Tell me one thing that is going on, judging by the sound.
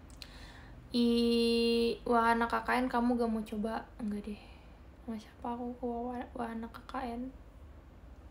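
A young woman sings softly close to the microphone.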